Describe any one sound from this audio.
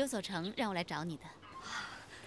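A young woman speaks calmly and clearly.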